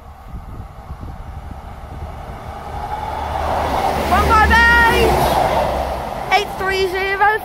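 A train approaches and rumbles loudly past close by.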